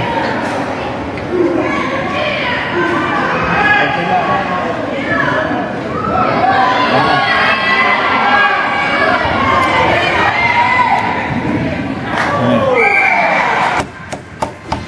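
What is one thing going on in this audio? A crowd of spectators cheers and shouts excitedly in a large echoing hall.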